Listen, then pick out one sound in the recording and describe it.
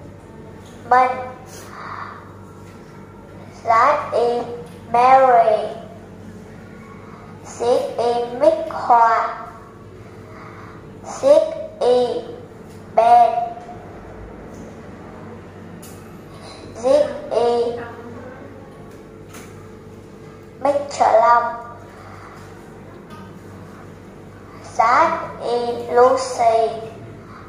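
A young girl speaks up clearly in short phrases, close by.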